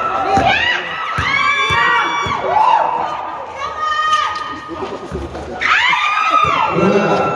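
Sneakers squeal sharply on a hard court.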